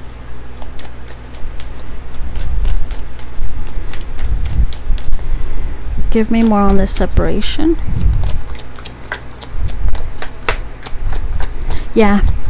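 Cards are shuffled with quick, soft flicking clicks.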